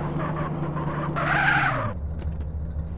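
Tyres screech as a car brakes to a stop.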